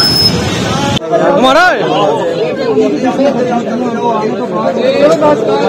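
A crowd of men and women talks and calls out over each other.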